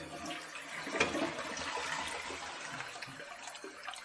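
Water splashes inside a toilet tank.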